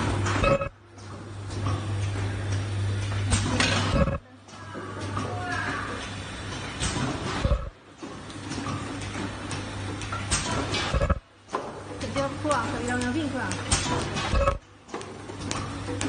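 A packing machine clatters and clicks steadily.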